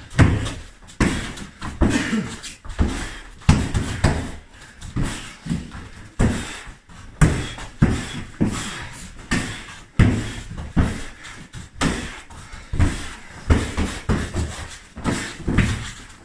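Blows thud repeatedly against padded strike shields.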